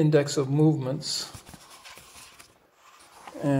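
Paper pages rustle as a book's pages are turned.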